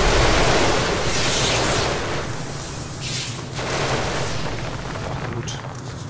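A mining tool blasts and grinds against rock.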